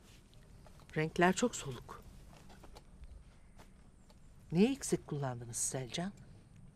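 A young woman speaks softly and with feeling, close by.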